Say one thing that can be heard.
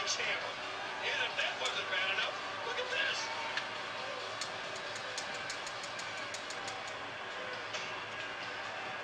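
A crowd cheers and roars steadily through a television speaker.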